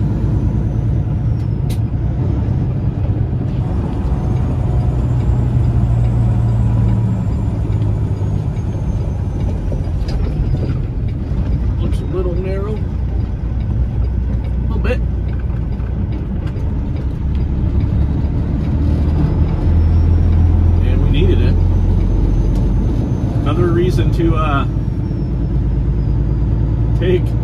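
Tyres rumble over rough, cracked pavement.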